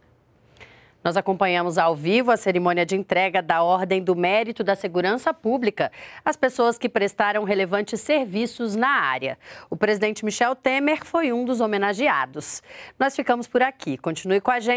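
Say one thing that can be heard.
A woman presenter speaks calmly and clearly into a microphone.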